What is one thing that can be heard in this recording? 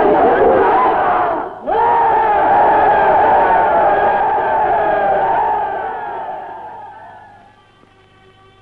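A large crowd cheers and shouts loudly, then fades away.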